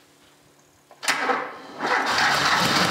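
A car engine cranks with a whirring starter motor.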